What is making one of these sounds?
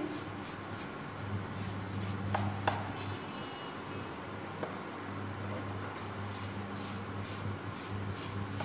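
A spatula scrapes and stirs food in a nonstick wok.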